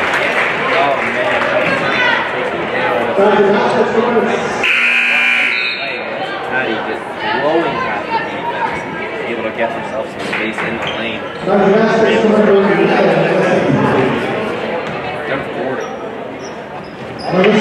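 Young women shout and call out to each other in an echoing gym.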